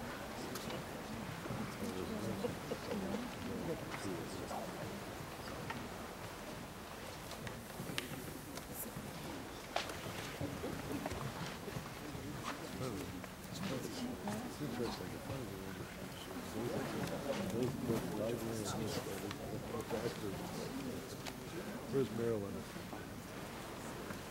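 A large crowd of men and women murmurs and chatters throughout an echoing hall.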